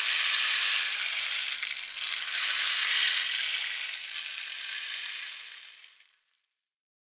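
A wooden rainstick trickles with a soft, rushing patter that slowly fades away.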